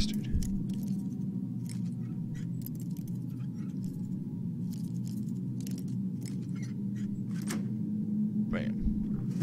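A metal lock pick scrapes and clicks inside a lock.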